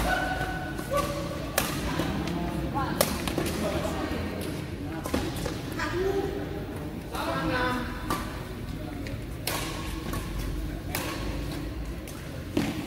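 Men talk and laugh in a large echoing hall.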